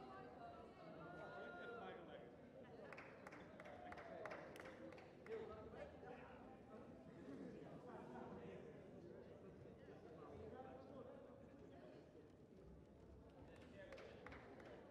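A crowd of people chatters quietly in a large, echoing hall.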